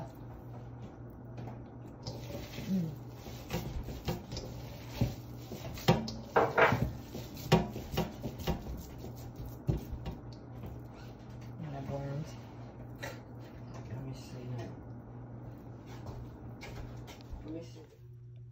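Hands squish and knead wet ground meat.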